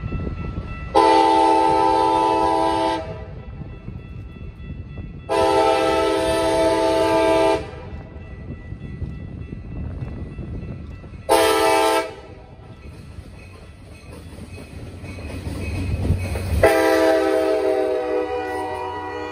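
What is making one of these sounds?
A train horn blasts loudly several times.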